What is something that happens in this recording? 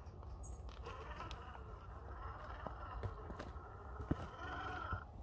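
A small electric motor whines as a toy truck crawls.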